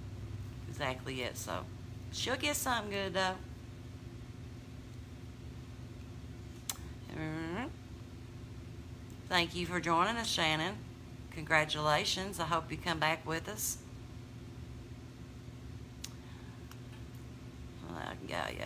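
A middle-aged woman talks calmly close to a microphone, in short bursts with pauses.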